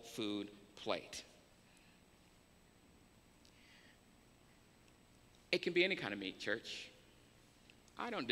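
A man speaks calmly and slowly into a microphone, with long pauses.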